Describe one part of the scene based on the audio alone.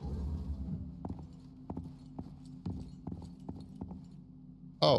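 Footsteps tread on a hard floor at a steady pace.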